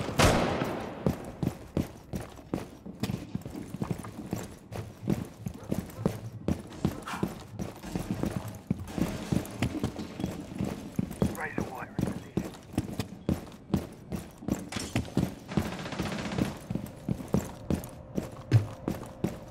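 Footsteps thud quickly on hard floors.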